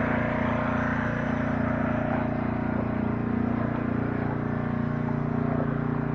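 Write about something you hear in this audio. A small tractor engine idles with a steady, rumbling chug close by.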